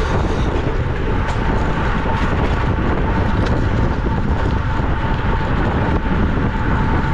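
Bicycle tyres whir on the road.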